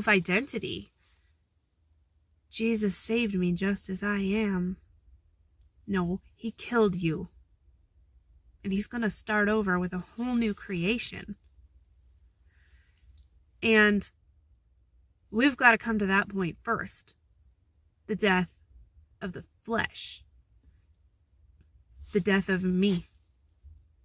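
A young woman talks expressively and close up, with pauses between phrases.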